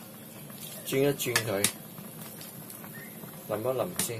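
A metal ladle pours sauce back into a wok.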